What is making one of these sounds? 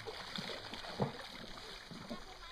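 A fish splashes at the surface of calm water.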